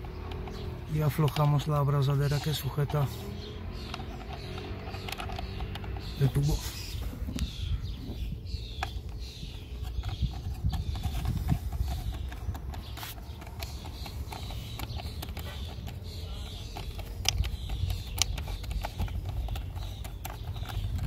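A socket wrench ratchets with quick clicks.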